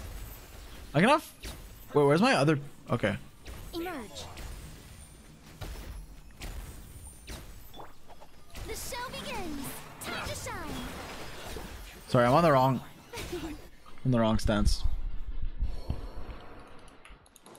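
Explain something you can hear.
Game combat sounds whoosh and crackle with spell effects.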